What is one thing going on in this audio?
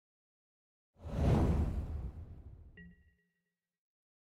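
A game's digital whooshing sound effect plays as cards shuffle.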